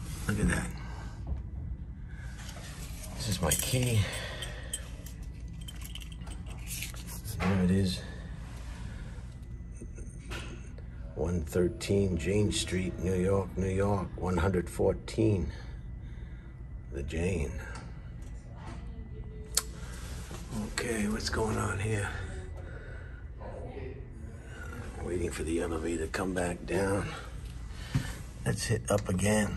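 An old elevator hums steadily as it moves.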